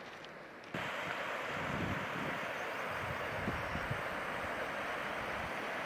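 A river rushes steadily far below.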